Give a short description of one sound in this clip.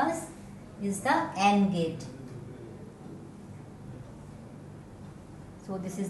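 A woman speaks calmly nearby, explaining.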